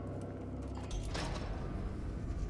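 Armour clanks as a man kneels down.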